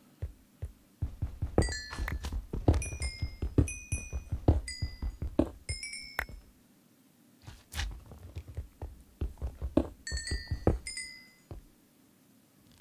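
Footsteps crunch on loose ground.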